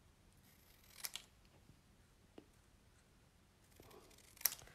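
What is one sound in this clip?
Scissors snip through thin card.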